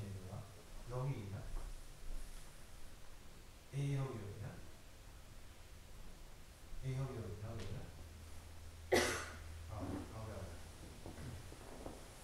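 An elderly man speaks slowly and calmly in short phrases, close by.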